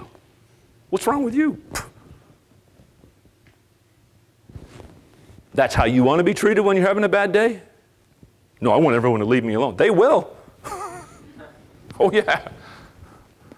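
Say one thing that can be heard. A man speaks with animation through a microphone in a room with a slight echo.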